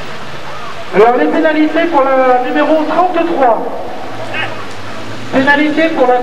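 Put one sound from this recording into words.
A rally car engine revs hard and roars past close by.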